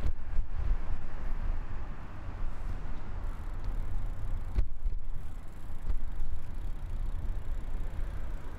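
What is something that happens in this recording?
A car rolls slowly along the road with a low rumble.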